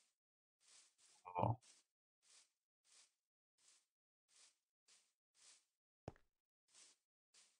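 Footsteps crunch softly on grass at a steady walking pace.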